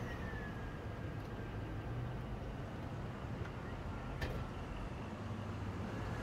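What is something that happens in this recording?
A truck engine hums steadily from inside the cab.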